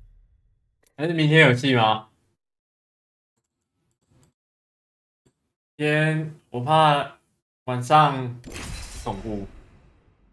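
A young man talks loudly and with animation into a close microphone.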